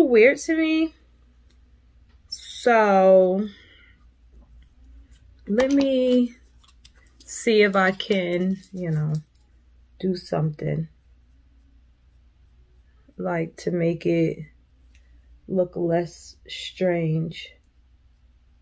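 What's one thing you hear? A woman talks calmly and close by, in short phrases with pauses.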